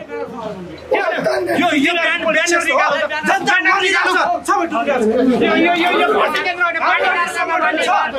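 A crowd shouts loudly and clamours close by.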